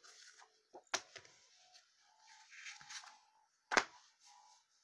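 A comic book knocks against a hard surface.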